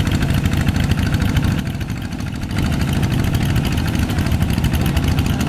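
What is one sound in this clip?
A small tractor engine chugs loudly and rapidly close by.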